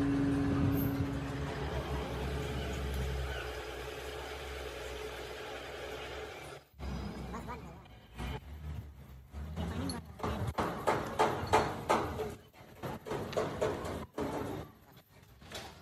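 Metal parts clink and knock against an engine.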